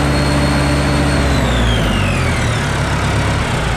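A turbocharger whines high and then winds down in pitch.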